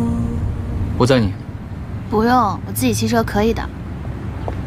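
A young woman speaks nearby in an animated, protesting voice.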